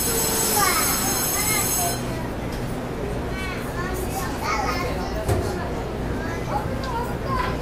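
An electric commuter train hums as it stands at a platform with its doors open.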